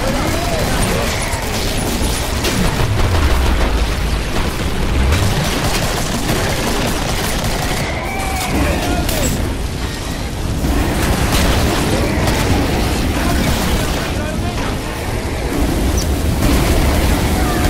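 A flamethrower roars with bursts of fire.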